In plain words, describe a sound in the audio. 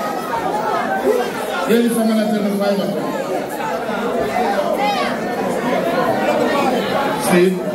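Loud music plays through speakers.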